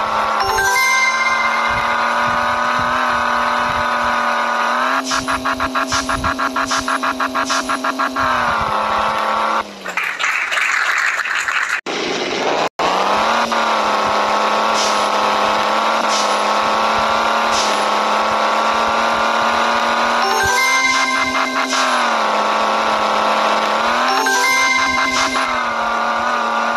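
A racing car engine hums steadily and revs up and down.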